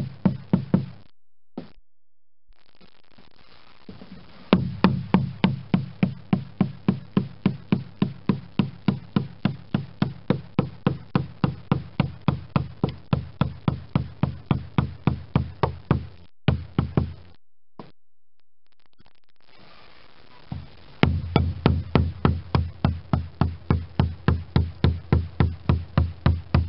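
A hammer taps rapidly and steadily on a chisel against wood.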